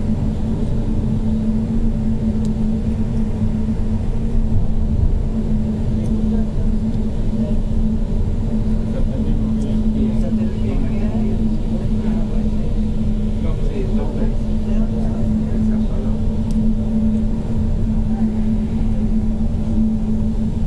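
An escalator hums and rumbles steadily in an echoing tunnel.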